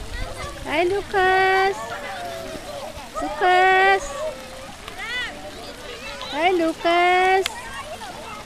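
A young woman calls out in a high, sing-song voice to a baby.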